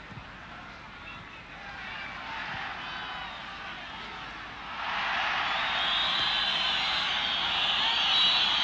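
A large stadium crowd cheers and roars, swelling loudly.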